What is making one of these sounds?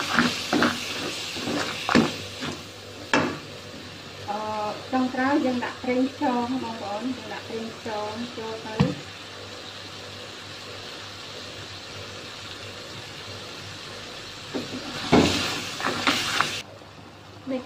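A spatula scrapes and clanks against a metal wok.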